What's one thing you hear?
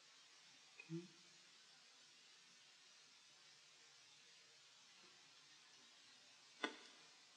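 Stiff paper rustles softly under fingers.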